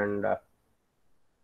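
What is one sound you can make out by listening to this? A man speaks briefly and calmly through an online call.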